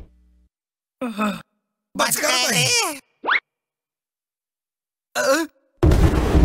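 A cartoon creature mutters and grumbles in short bursts.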